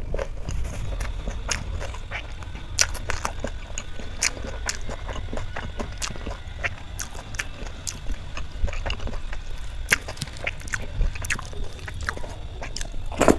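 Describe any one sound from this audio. Fingers squish and mix wet food in a metal plate.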